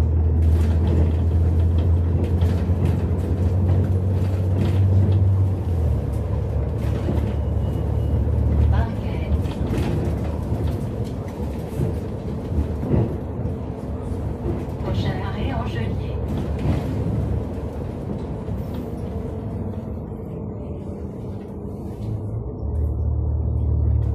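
The bus rattles and creaks as it rolls over the road.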